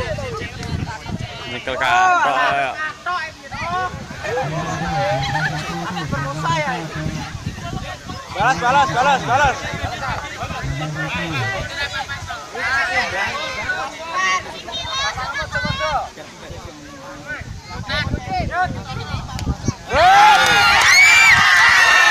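A crowd of men and women talks and shouts outdoors.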